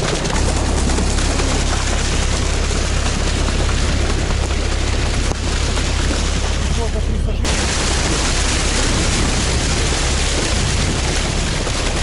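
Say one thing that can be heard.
Water churns and splashes loudly against a moving hull.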